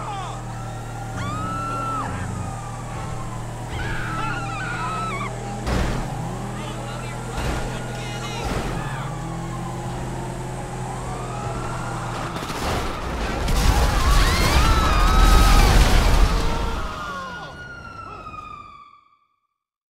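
Sirens wail, rising and falling nearby.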